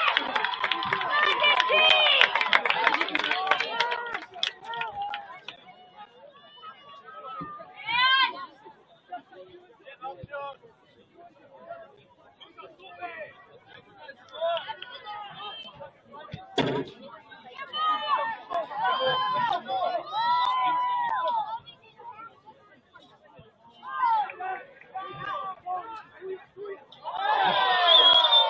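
A crowd of spectators cheers and yells from the sidelines.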